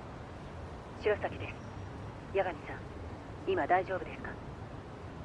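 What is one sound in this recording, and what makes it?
A young woman speaks through a phone.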